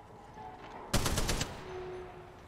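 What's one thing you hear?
A gun fires a short burst.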